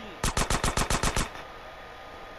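A submachine gun fires a rapid burst.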